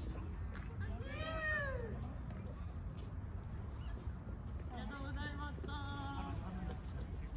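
Men call out to each other.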